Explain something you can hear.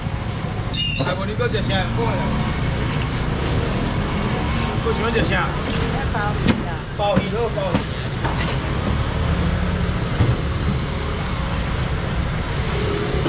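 A young man talks loudly nearby.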